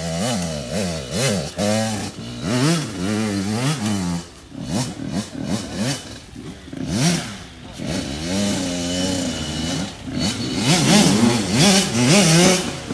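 A dirt bike engine revs hard nearby, its pitch rising and falling again and again.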